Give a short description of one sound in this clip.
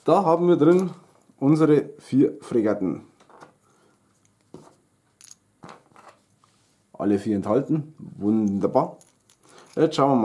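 Small plastic pieces click together in a hand.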